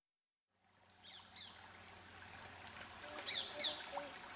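A river flows and ripples nearby.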